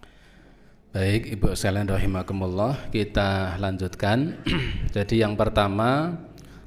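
A middle-aged man chants in a drawn-out melodic voice through a microphone.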